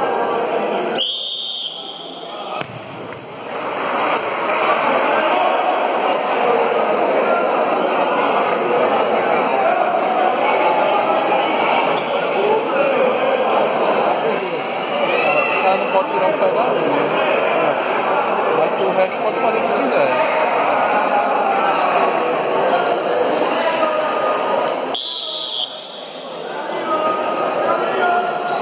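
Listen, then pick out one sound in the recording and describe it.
A crowd of spectators chatters and cheers loudly in an echoing hall.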